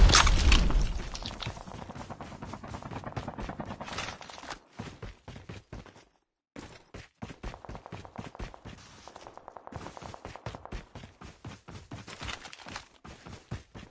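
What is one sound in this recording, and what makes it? Footsteps run quickly over dirt and grass.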